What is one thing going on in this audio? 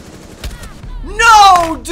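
A young man shouts loudly into a close microphone.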